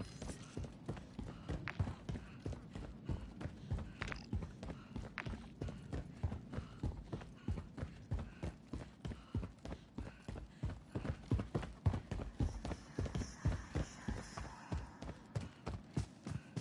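Footsteps run quickly and steadily on hard pavement.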